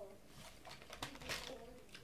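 Paper crinkles as a food box is handled.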